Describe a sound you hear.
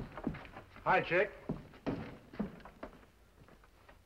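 A door opens and shuts.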